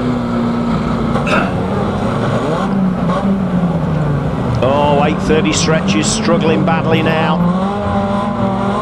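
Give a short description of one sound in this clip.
Metal crunches as vans crash into each other.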